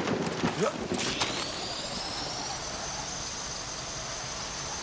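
A zipline pulley whirs along a cable with a rising whine.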